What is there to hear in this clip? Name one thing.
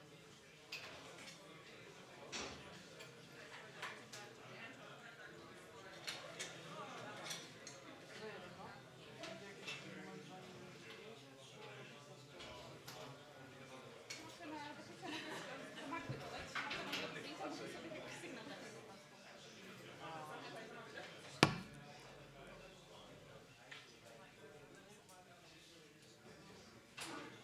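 A crowd of people chatters quietly in a room.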